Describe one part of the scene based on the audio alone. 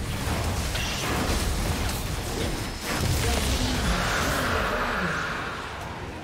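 Magic blasts crackle and burst during a fight.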